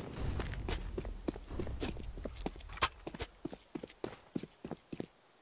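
Footsteps patter quickly on hard ground.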